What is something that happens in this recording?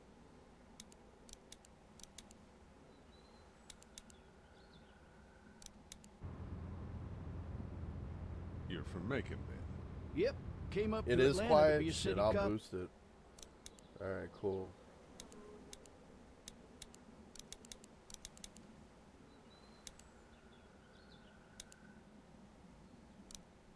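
Menu clicks tick softly and repeatedly.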